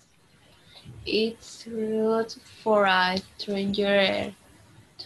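A young girl speaks briefly through an online call.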